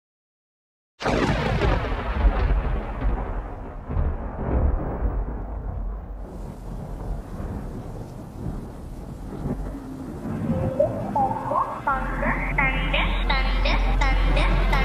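Electronic dance music plays with a deep thumping bass and sweeping synth tones.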